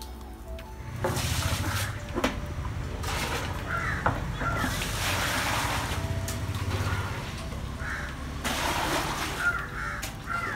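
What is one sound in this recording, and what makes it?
Water pours and splashes onto the ground.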